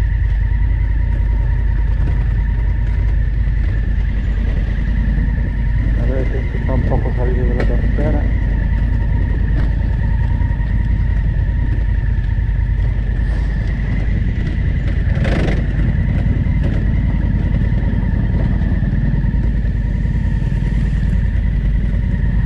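Wind rumbles loudly against a microphone.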